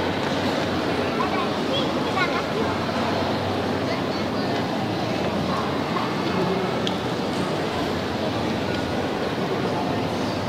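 A large crowd of men and women chatters and murmurs in a large echoing hall.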